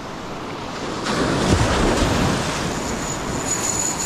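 A small wave rolls in and washes past.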